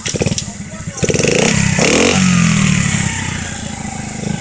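A motorcycle engine revs up as the motorcycle pulls away.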